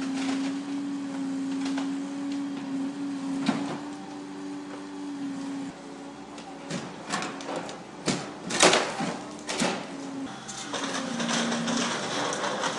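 A hydraulic excavator's diesel engine runs.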